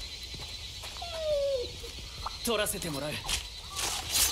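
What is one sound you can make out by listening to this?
A creature cries out with high, wavering calls.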